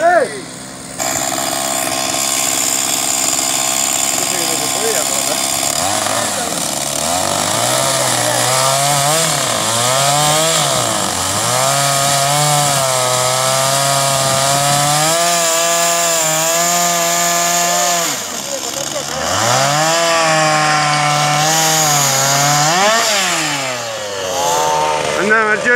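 A chainsaw engine runs close by, revving up and down repeatedly.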